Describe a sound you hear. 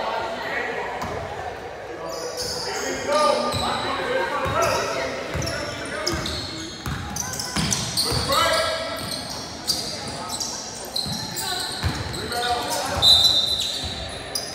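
Young men shout to each other across an echoing gym.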